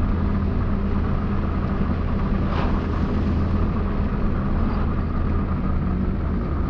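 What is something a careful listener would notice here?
A car engine hums steadily from close by.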